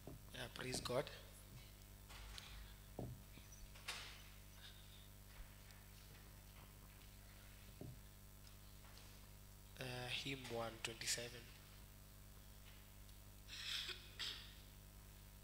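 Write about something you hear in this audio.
A woman speaks into a microphone in a large room, with pauses between her phrases.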